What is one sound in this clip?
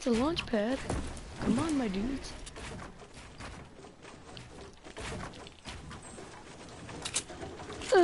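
Wooden walls snap into place with quick knocks.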